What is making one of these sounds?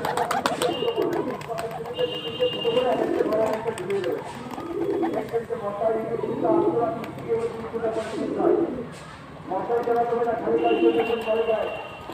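Pigeon wings flap as birds take off and land.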